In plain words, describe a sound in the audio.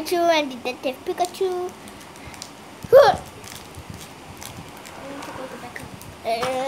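A foil card wrapper crinkles in a boy's hands.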